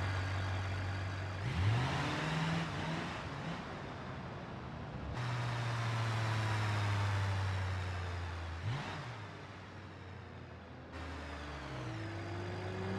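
Tyres hiss over pavement.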